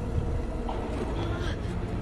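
Footsteps thud up wooden stairs.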